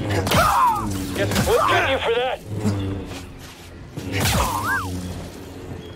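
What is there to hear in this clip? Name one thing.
A lightsaber hums.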